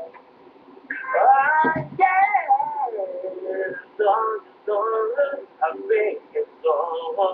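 A young man sings close by.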